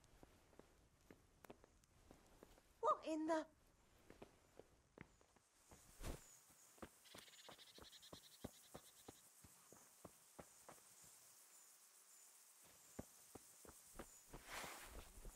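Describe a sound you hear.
Footsteps tread steadily on a dirt path.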